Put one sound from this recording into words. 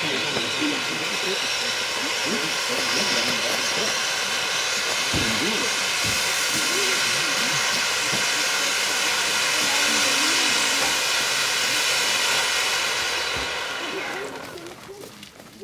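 A fountain firework hisses and crackles steadily, then fades out.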